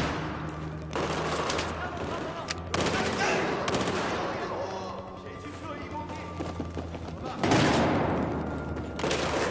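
Loud bursts of gunfire crack and echo in a large hard space.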